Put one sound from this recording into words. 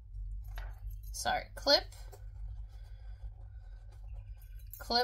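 Cloth rustles softly as it is folded by hand.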